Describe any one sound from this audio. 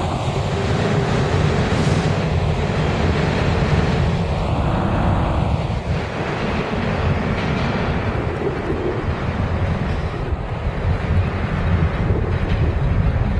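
A subway train rumbles loudly along the tracks in an echoing station.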